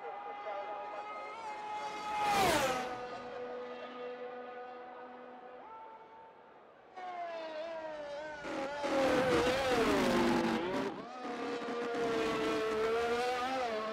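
A racing car engine screams at high revs and shifts gears as the car speeds past.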